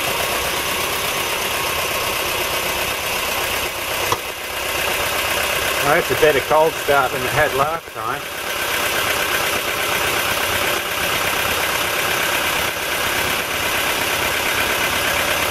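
A car engine idles close by with a steady, noisy rattle.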